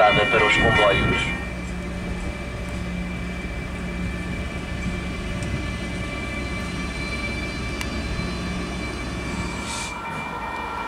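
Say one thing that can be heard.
An electric locomotive hums and rumbles as it rolls slowly along the track.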